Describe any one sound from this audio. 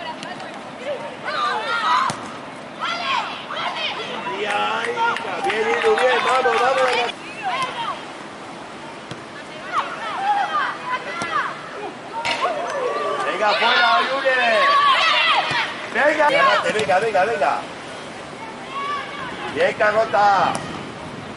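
Young women shout and call out across an open pitch.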